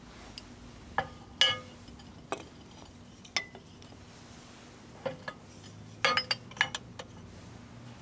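Glass light bulbs clink against a glass plate.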